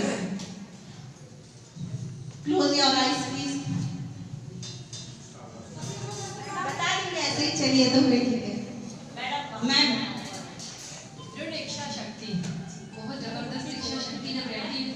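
A woman sings into a microphone, heard through a loudspeaker in an echoing room.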